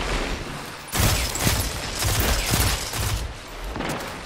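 Rapid gunfire bursts from a game rifle.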